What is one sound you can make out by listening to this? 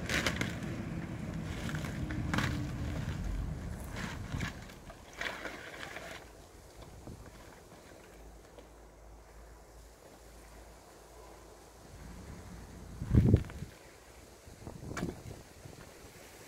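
A plastic sack rustles and crinkles as it is handled.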